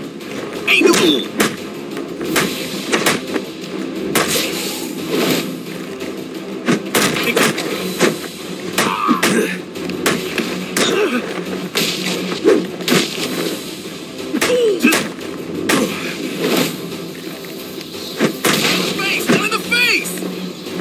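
Punches and kicks thud hard again and again in a brawl.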